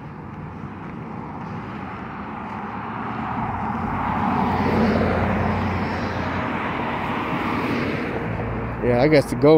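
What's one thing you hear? A car drives past close by, its tyres hissing on the road.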